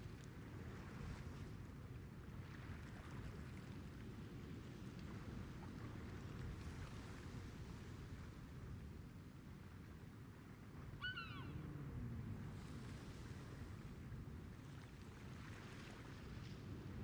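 Waves wash gently and steadily against a ship's hull.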